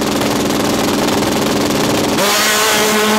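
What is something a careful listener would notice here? Two drag racing motorcycles idle at the start line.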